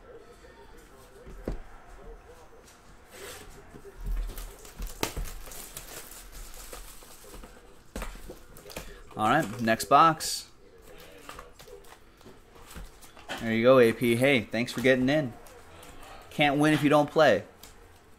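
Cardboard boxes and foil packs rustle and tap as they are handled.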